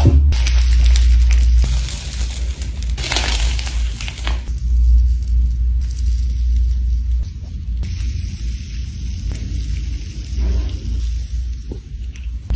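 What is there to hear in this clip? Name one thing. Soft slime squishes and crackles between fingers.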